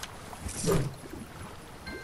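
A fishing line splashes into water.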